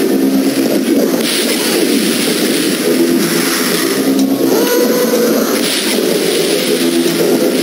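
A rocket launcher fires with a whoosh.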